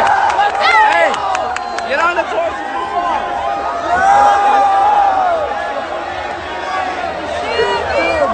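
Young men cheer loudly with raised arms.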